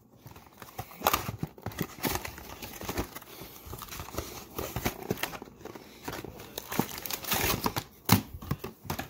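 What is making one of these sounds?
A cardboard box is pried open with a scrape.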